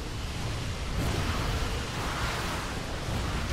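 A huge beast lets out a deep roar.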